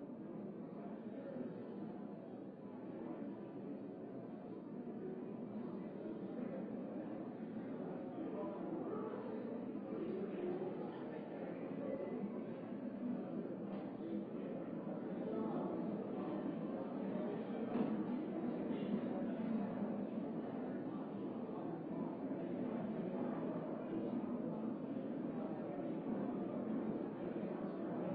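A crowd of men and women murmur and chat in a large echoing hall.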